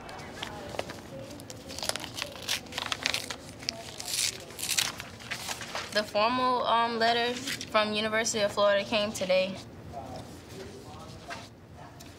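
Paper rustles as sheets are handled and unfolded.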